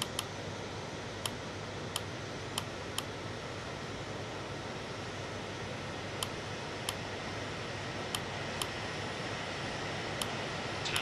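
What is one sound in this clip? Sharp clicks sound now and then as buttons are pressed.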